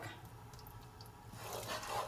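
Milk pours from a plastic bottle into a hot saucepan.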